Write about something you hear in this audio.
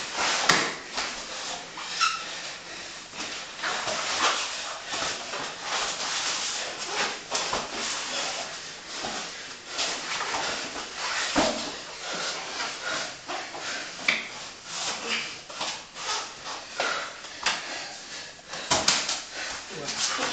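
Two men grapple and thump on a padded mat.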